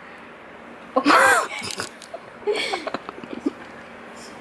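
Two young women laugh together close by.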